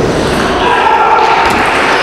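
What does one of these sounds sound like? A table tennis ball clicks against paddles and the table.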